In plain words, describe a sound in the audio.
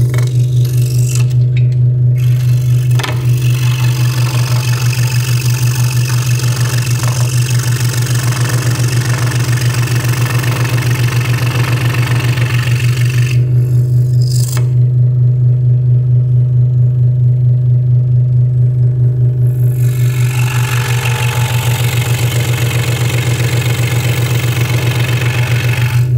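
A scroll saw buzzes steadily as its blade chops up and down.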